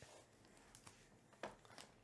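Hands shift shrink-wrapped cardboard boxes on a table.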